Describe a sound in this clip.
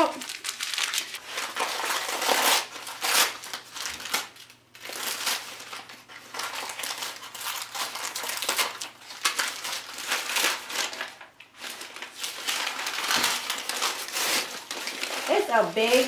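Paper wrapping crinkles and tears as it is pulled open.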